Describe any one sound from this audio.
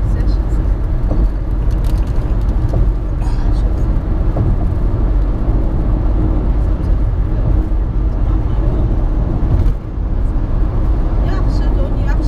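Tyres rumble steadily on a highway, heard from inside a car.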